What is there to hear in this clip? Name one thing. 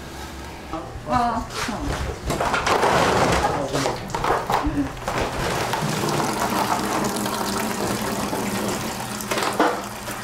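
Water pours and splashes from a tub onto a wooden board.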